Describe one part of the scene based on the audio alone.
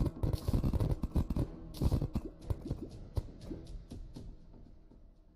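Video game sound effects crackle and thump rapidly.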